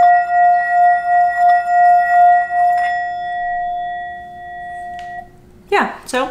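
A singing bowl rings with a steady, humming tone that slowly fades.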